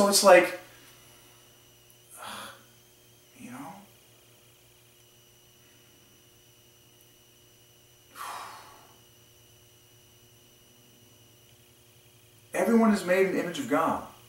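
A man speaks calmly and close by, with long pauses.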